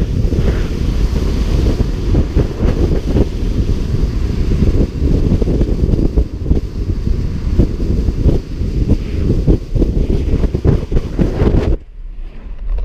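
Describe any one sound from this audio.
Wind roars loudly past a moving car outside.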